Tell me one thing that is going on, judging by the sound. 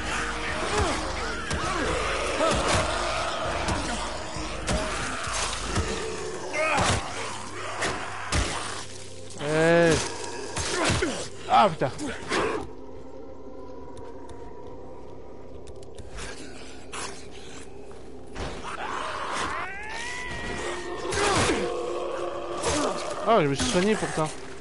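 Heavy blows thud as figures fight.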